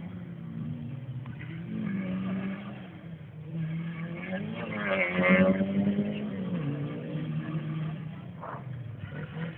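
A rally car engine roars and revs as the car speeds along a dirt track, loudest as it passes close by.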